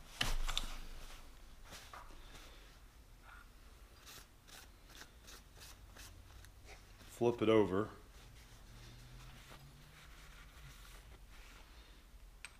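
A cloth rubs and wipes across a metal surface.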